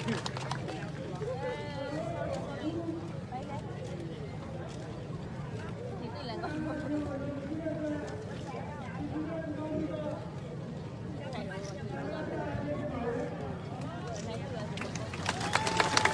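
Many voices talk nearby in a crowd.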